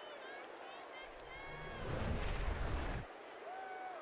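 A loud whoosh sweeps past.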